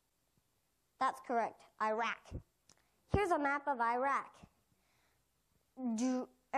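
A young person speaks clearly into a microphone.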